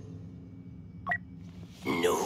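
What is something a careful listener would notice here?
A short electronic menu click sounds.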